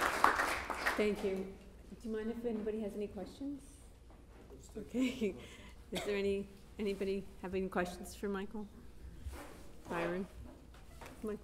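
A woman speaks calmly through a microphone in an echoing hall.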